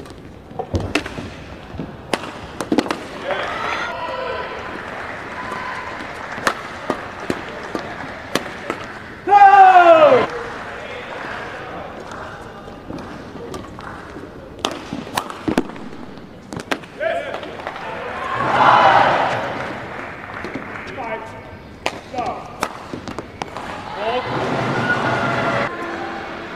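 A shuttlecock is struck sharply back and forth with rackets in a large echoing hall.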